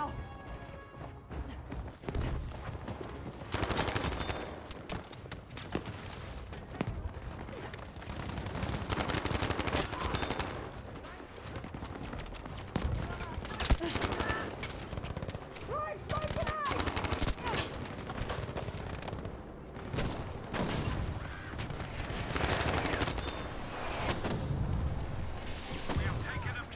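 Gunshots crack rapidly in bursts.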